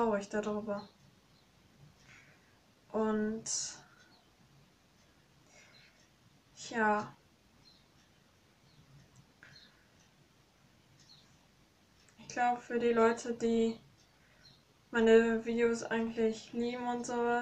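A young woman sings close by in short phrases with pauses between them.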